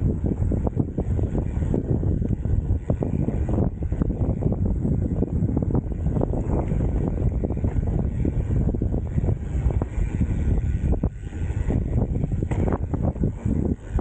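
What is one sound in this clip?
Mountain bike tyres roll over a dry dirt trail.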